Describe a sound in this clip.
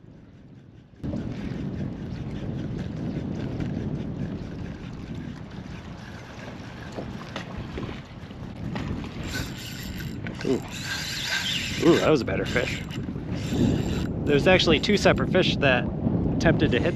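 Wind blows hard across open water, rumbling and buffeting.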